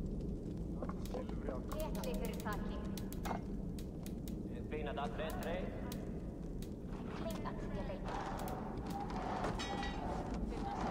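Soft interface clicks and chimes sound as menu items are selected.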